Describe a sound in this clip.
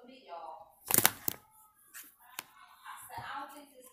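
A phone knocks and rustles in a hand.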